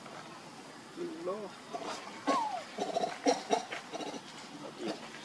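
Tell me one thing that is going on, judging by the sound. A young monkey squeaks in short high cries.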